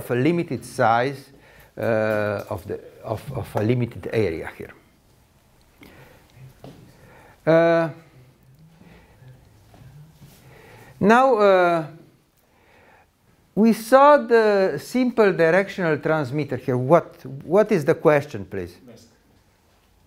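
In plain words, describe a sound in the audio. An elderly man lectures calmly through a microphone, in short bursts with pauses.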